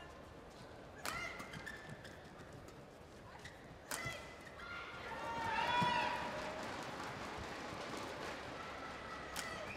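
Shoes squeak sharply on a court floor.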